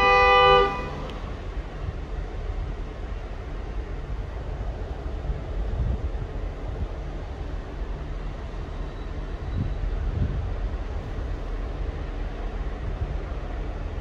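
A diesel locomotive engine rumbles low and steady as the train rolls slowly in.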